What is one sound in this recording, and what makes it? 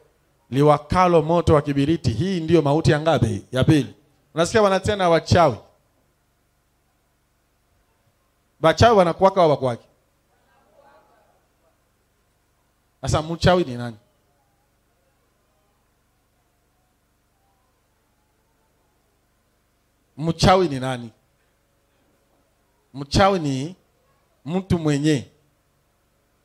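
A man preaches with animation through a microphone, in short bursts with long pauses.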